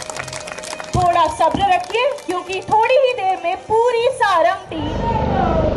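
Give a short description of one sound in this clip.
People in a crowd cheer.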